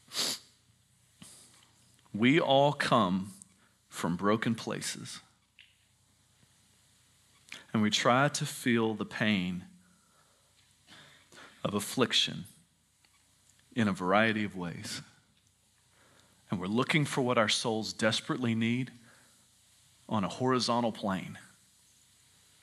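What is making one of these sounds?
A man speaks calmly into a microphone in a large room, with pauses between phrases.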